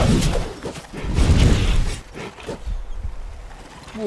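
A sword strikes hard with heavy impacts.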